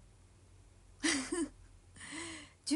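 A young woman laughs briefly.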